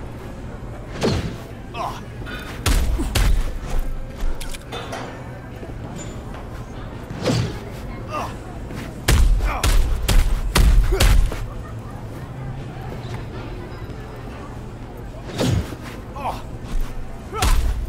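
Heavy punches thud against a body in quick blows.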